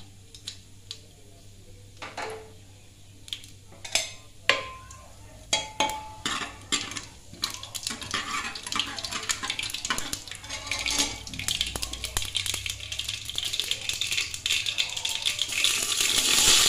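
Seeds sizzle and crackle in hot oil.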